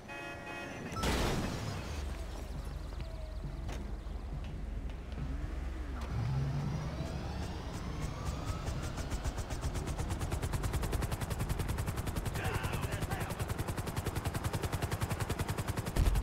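A light single-rotor helicopter's blades chop as it takes off and flies.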